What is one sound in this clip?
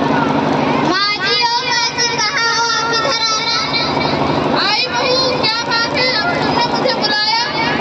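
A young woman sings through a microphone over a loudspeaker.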